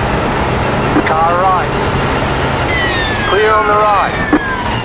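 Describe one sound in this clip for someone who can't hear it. A racing car engine blips sharply as the gears shift down.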